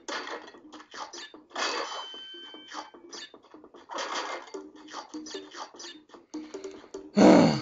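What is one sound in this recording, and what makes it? Light footsteps patter as a cartoon character runs.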